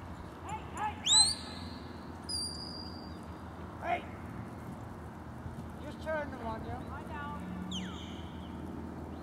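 A man whistles sharp commands outdoors.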